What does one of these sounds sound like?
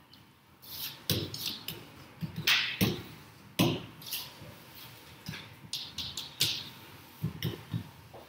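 A pen taps and squeaks against a glass board.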